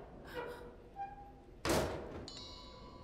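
A wooden crate lid is pried and knocks open.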